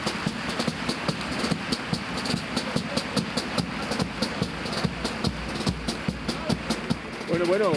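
A drum beats a quick, steady rhythm.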